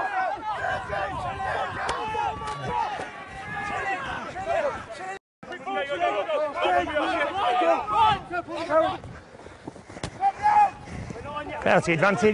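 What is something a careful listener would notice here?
Spectators cheer and shout from the sideline.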